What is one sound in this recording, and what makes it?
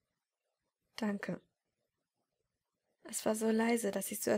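A young woman speaks softly, close to the microphone.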